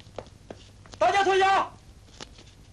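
A man shouts a short command.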